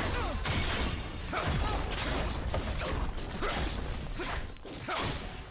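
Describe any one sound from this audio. Spell blasts and weapon hits crash in quick, repeated bursts.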